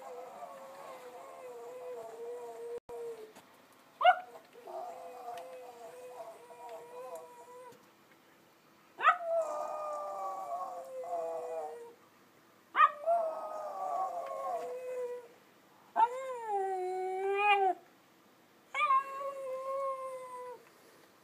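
A small dog howls in long, wavering cries, close by outdoors.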